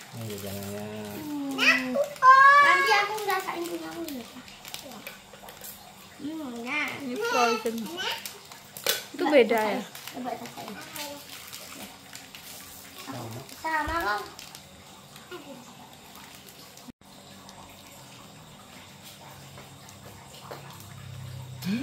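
Plastic wrappers crinkle in hands.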